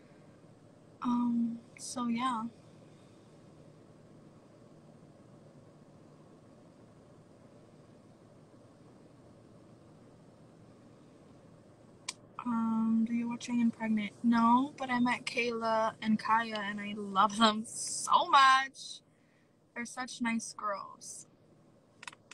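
A woman talks casually and close up, heard through a phone's microphone.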